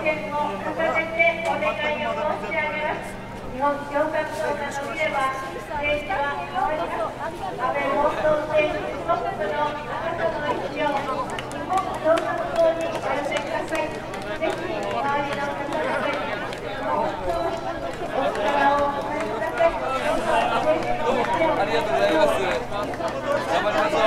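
A man speaks up close in a friendly, animated way.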